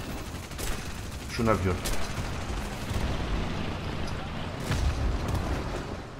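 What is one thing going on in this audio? An explosion booms as a plane bursts into flames.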